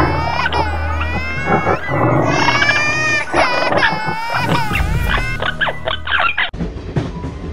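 A child speaks with animation, close by.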